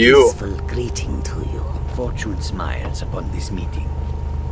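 A man's voice speaks a calm greeting close by.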